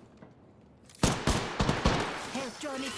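A rifle fires several loud, sharp shots in quick succession.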